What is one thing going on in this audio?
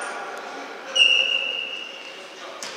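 A referee's whistle blows a short blast.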